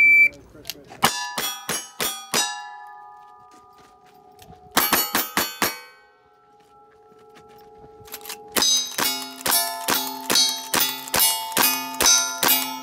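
Steel targets ring out when struck.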